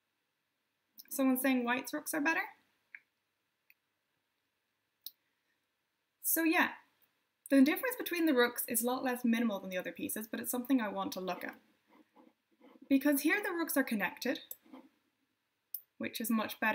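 A young woman speaks calmly into a microphone, close by, with pauses.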